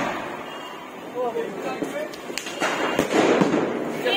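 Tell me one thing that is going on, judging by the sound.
A firework rocket whooshes and crackles overhead.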